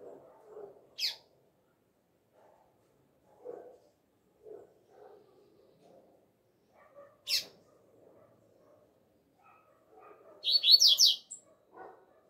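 A double-collared seedeater gives short, sharp chirps.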